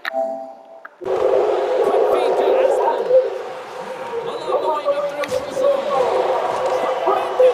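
Ice skates scrape and swish across the ice.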